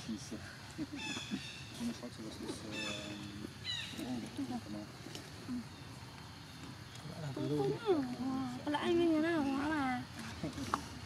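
Young monkeys squeak and chirp in high voices close by.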